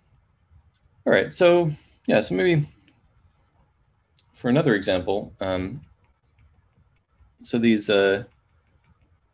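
A man speaks calmly in short phrases through a microphone, as on an online call.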